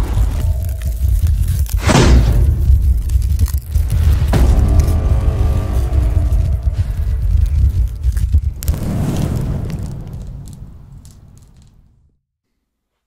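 A deep explosion roars and slowly fades away.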